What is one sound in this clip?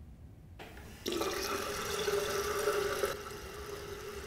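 Water runs from a tap into a sink.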